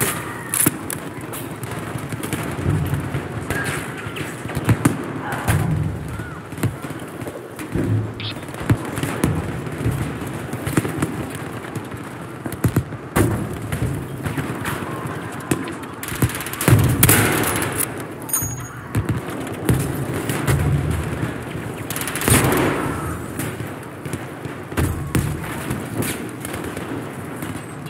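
Gunshots crack repeatedly nearby.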